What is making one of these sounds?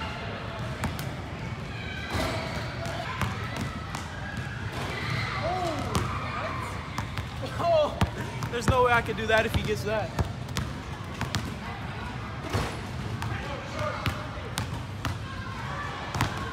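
Basketball sneakers squeak on the court floor.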